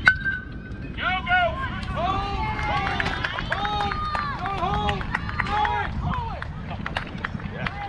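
Young players shout and cheer across an open field.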